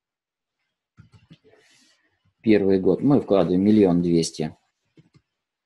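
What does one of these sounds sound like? An older man speaks calmly into a close microphone.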